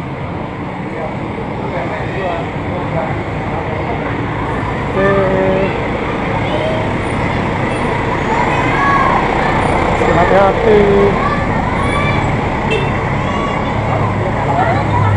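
Men and children talk nearby outdoors.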